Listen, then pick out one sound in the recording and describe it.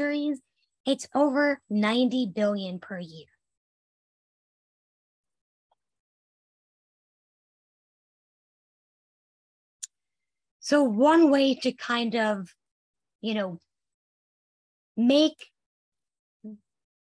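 A woman speaks calmly through a microphone, pausing now and then.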